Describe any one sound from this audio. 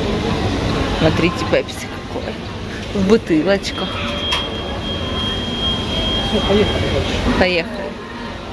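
Plastic bottles and cans clatter as they are dropped into a wire shopping cart.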